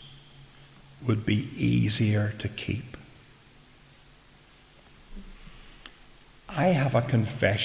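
An elderly man preaches into a microphone, speaking calmly with pauses.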